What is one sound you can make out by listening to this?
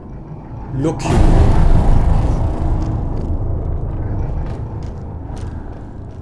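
A heavy bell crashes down with a deep, rumbling boom.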